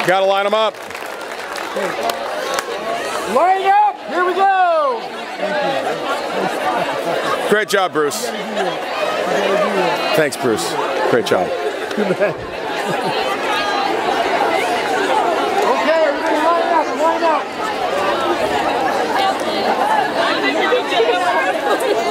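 A large crowd of young women chatters and shouts excitedly outdoors.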